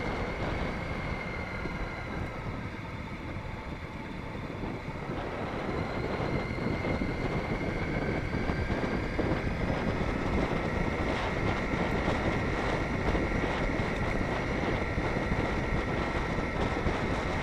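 Tyres crunch on gravel.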